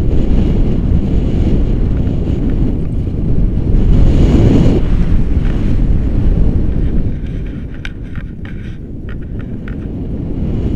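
Strong wind rushes and buffets loudly against a microphone outdoors.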